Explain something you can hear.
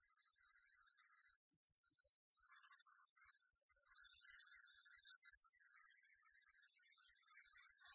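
Monster truck engines rev and roar.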